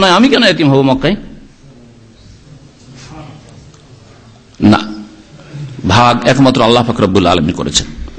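A man preaches with animation through a microphone, with pauses between phrases.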